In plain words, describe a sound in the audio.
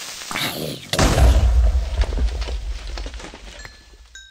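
A creeper explodes with a deep, rumbling boom.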